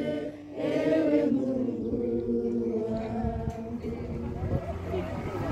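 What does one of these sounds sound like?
A group of young men and women sings together outdoors.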